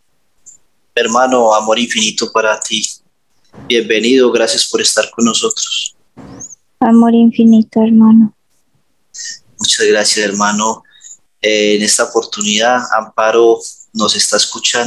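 A man speaks calmly through a headset microphone on an online call.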